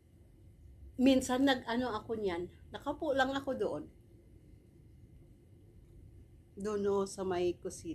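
A middle-aged woman speaks close by with animation.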